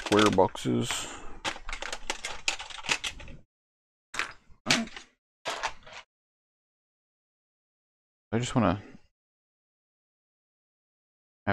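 Small wooden pieces clatter on a tabletop.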